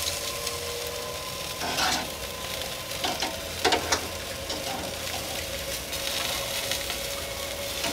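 Meat sizzles softly on a hot grill.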